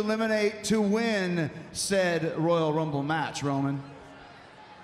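A man talks with animation through a microphone in a large echoing arena.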